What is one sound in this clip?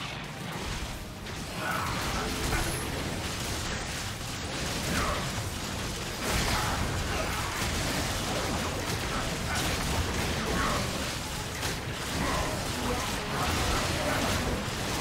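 Magical blasts and impacts crackle and boom in a fast video game battle with a huge monster.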